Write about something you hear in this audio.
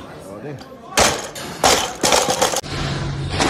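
A heavy barbell crashes down onto a rubber floor and bounces with clanking plates.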